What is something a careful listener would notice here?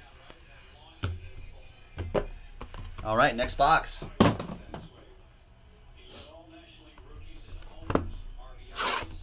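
A cardboard box knocks and rustles as hands handle it.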